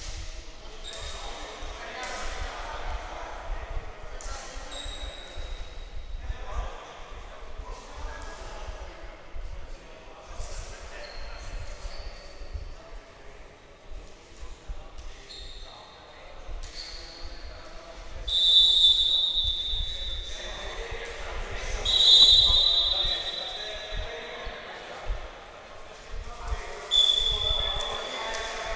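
Young men talk and call out across a large echoing hall.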